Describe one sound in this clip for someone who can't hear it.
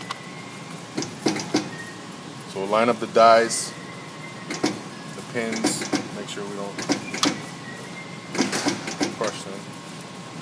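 Hands knock and click against a metal machine.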